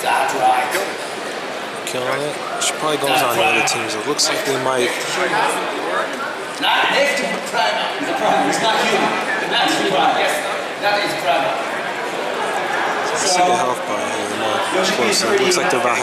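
A crowd of men and women chatter nearby in a busy room.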